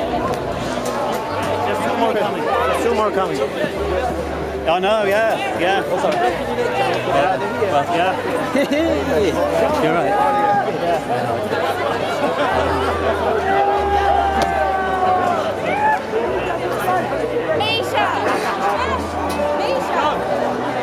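A crowd of people chatters all around in a large open stadium.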